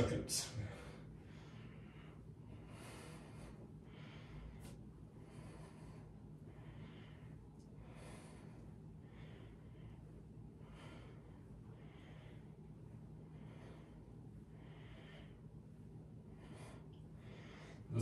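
A man breathes in and out slowly and evenly.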